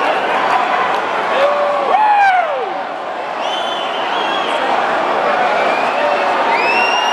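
A large crowd cheers and screams loudly in a big echoing hall.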